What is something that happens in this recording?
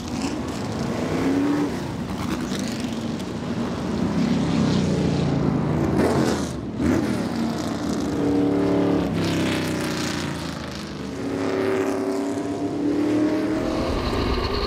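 Racing car engines roar past at speed.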